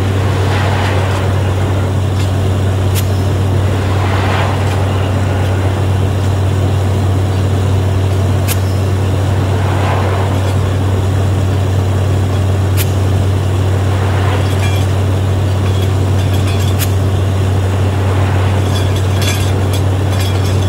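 A drilling rig's diesel engine drones loudly and steadily.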